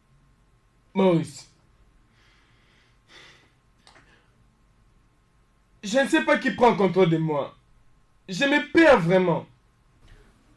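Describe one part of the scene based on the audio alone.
A second man speaks emphatically close by.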